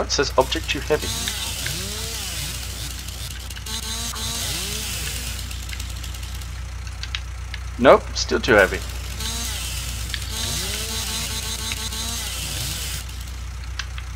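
A chainsaw whines as it cuts through wood.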